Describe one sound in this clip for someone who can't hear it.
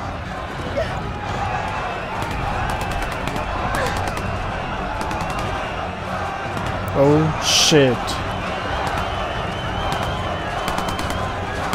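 A crowd of men shouts and jeers.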